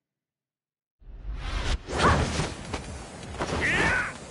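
A deep whooshing blast swells and rumbles.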